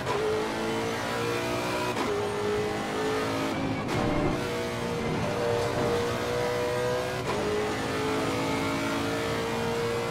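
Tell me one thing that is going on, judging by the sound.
A racing car engine roars loudly, rising and dropping in pitch as gears shift.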